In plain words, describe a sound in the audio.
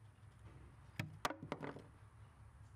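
A plastic knob clicks sharply as it is pulled off a screw.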